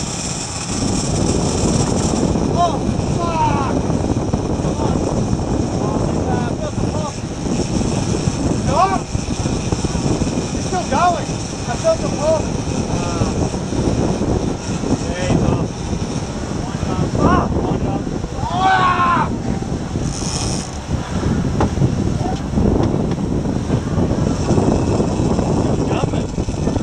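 Wind blows hard across the microphone.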